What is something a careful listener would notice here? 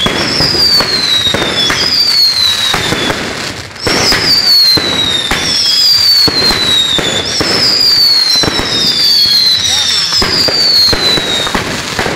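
Fireworks burst and crackle overhead.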